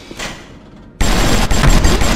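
A gunshot blasts.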